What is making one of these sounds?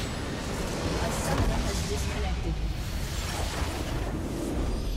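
A huge crystal shatters with a booming explosion.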